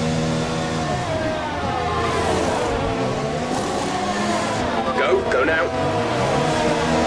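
Pneumatic wheel guns whir and clatter during a pit stop.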